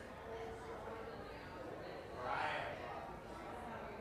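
A middle-aged woman talks in a large echoing room.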